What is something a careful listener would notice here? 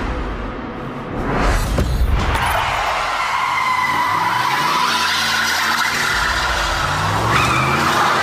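Tyres screech on concrete while spinning.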